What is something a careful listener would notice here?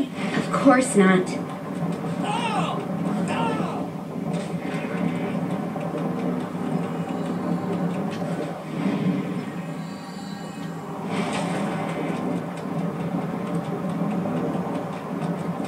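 Game music plays steadily through a television speaker.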